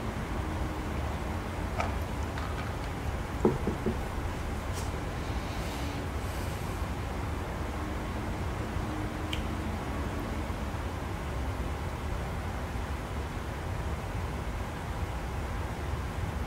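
Jet engines drone steadily in a low rumble.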